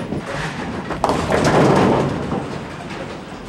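A bowling ball crashes into pins, scattering them with a clatter.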